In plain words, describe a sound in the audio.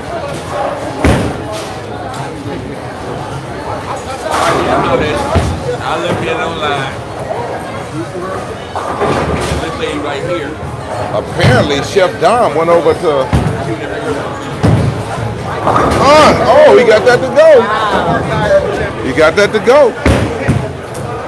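Bowling pins crash and clatter.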